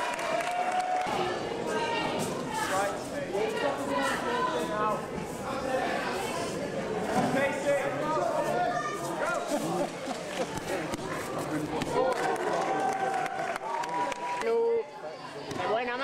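Spectators talk and call out in a large echoing hall.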